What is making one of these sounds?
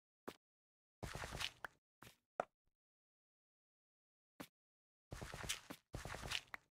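Blocks break with a crumbling sound in a block game.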